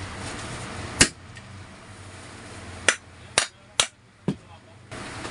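Metal parts knock sharply against each other.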